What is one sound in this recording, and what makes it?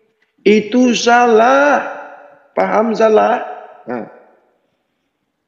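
An elderly man speaks with emphasis, close by.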